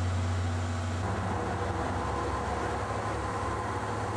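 A train glides past with a low, steady hum.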